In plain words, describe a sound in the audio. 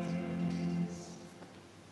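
A man chants in a large echoing hall.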